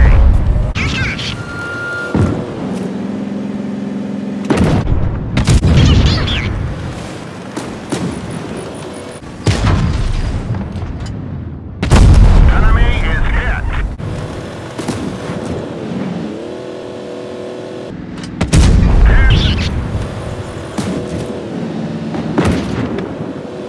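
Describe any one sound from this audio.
A tank cannon fires with heavy booms, again and again.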